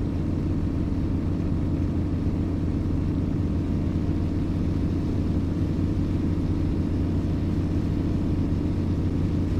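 A diesel truck engine drones while cruising at highway speed.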